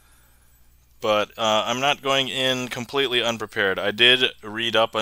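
A man speaks with animation into a close headset microphone.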